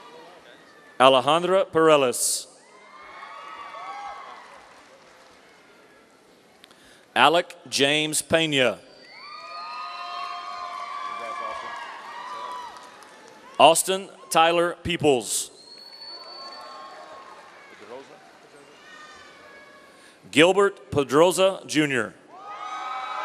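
A man reads out names through a loudspeaker in a large echoing hall.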